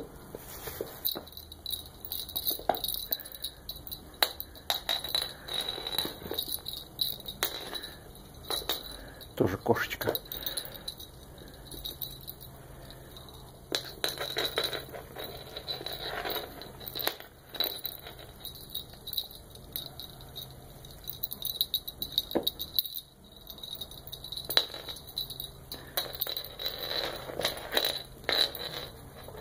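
Kittens scamper and scuffle on a wooden floor.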